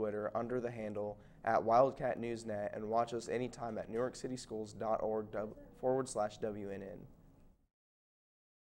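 A young man speaks calmly and clearly, close to a microphone.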